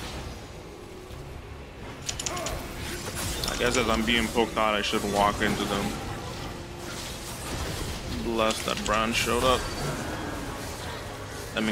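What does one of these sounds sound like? Magic spells burst and clash in a fast fight.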